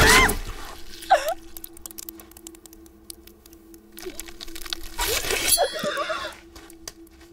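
A woman groans and whimpers in pain.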